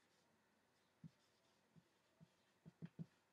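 A marker taps against a whiteboard several times.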